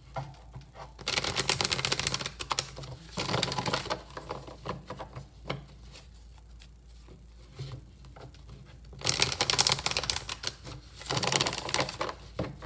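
A deck of cards is shuffled in quick riffling bursts.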